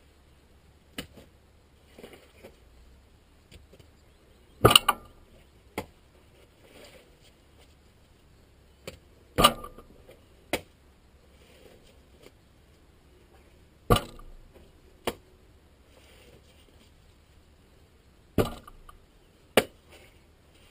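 A spade cuts and thuds into damp peat again and again.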